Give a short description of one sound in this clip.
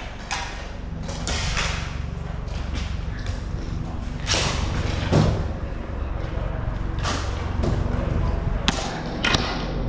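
Skate wheels roll and scrape steadily across a plastic floor.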